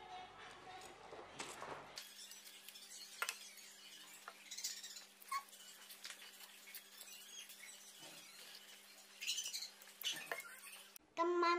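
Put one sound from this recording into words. A fork clinks against a bowl.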